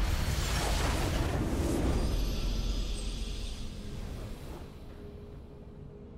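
A triumphant victory fanfare plays and slowly fades.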